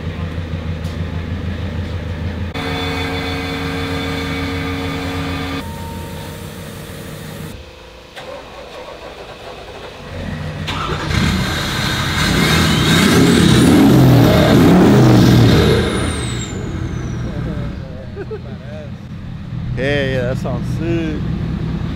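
A diesel truck engine rumbles at idle.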